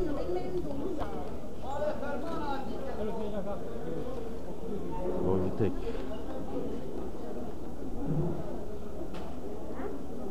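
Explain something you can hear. Many voices chatter in a busy, crowded room.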